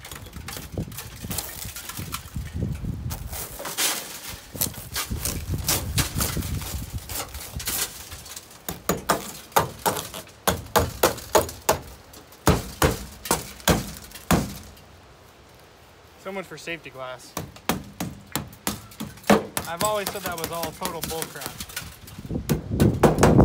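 A hammer knocks and crunches through shattered car window glass.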